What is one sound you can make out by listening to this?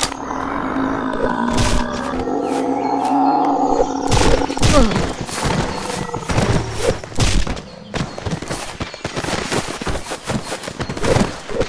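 Punches land with dull, repeated thuds.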